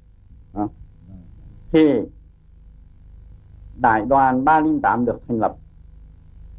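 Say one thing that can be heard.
An elderly man speaks calmly and close by, in short bursts.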